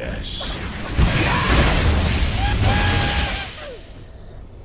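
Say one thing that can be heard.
Magic blasts and crackles loudly during a fight.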